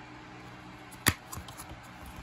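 A plastic case clicks open.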